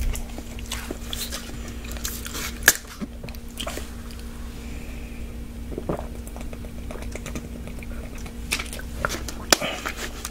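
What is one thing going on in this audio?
A plastic water bottle crinkles in a hand close to a microphone.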